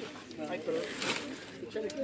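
Plastic bags rustle as they are set on the ground.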